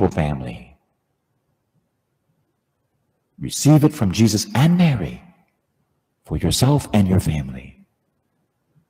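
A man speaks slowly and solemnly through a microphone in a large echoing hall, with long pauses.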